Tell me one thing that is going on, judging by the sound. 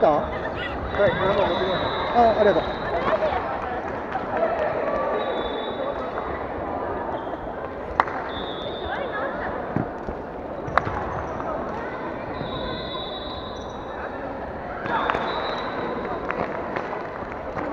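Children's voices echo around a large hall.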